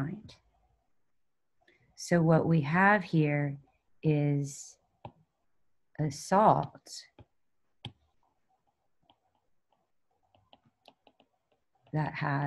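A young woman speaks calmly into a microphone, in short bursts with pauses.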